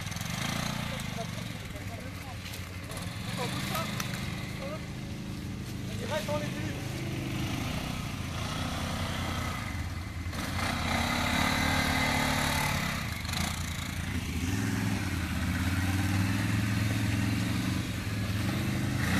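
A quad bike engine rumbles and revs nearby.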